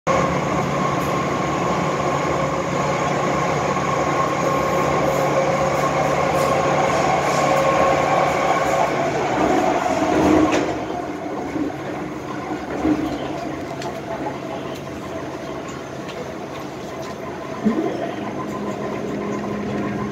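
A train rumbles and rattles along its track with a steady hum.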